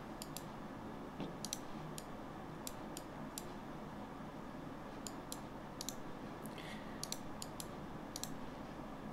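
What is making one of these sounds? A computer mouse clicks sharply, again and again.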